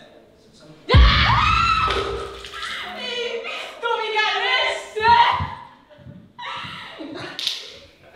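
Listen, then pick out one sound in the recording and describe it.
A young woman shouts loudly with excitement.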